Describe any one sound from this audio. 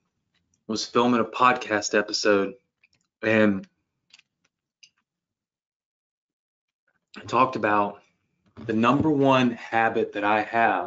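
A young man talks calmly into a close microphone, in bursts with pauses.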